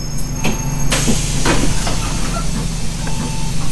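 Bus doors hiss open with a burst of air.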